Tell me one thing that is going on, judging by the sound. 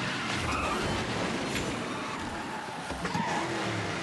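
Kart tyres screech while drifting through turns.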